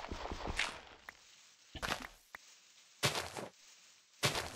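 Dirt crunches in short bursts as blocks are dug away.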